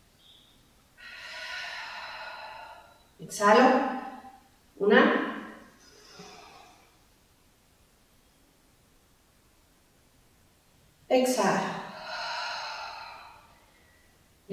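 A woman speaks clearly and calmly, giving instructions close to a microphone.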